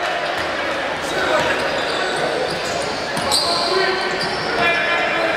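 A crowd murmurs in an echoing gym.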